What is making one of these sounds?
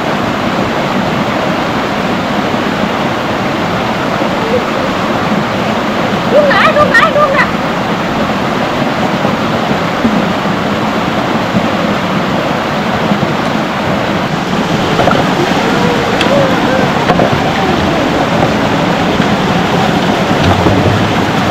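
A stream gurgles steadily over rocks.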